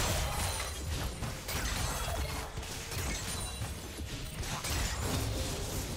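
Magic blasts whoosh and crackle in a video game battle.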